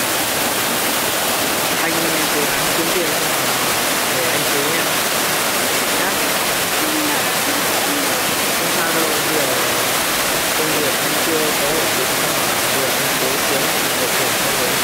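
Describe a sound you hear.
A stream rushes steadily nearby.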